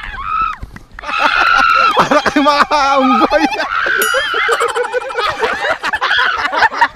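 Several young men shout and laugh together outdoors.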